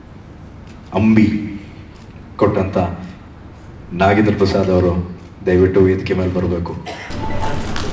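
A young man speaks into a microphone over loudspeakers.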